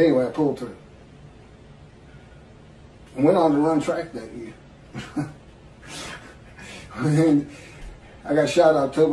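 A middle-aged man speaks calmly over an online call, with pauses between phrases.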